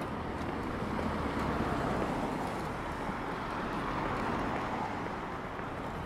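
A delivery truck drives past with a low engine rumble.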